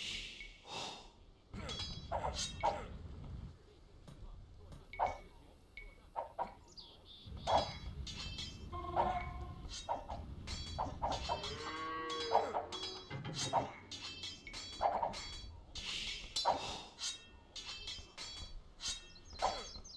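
Short computer game sound effects click and chime now and then.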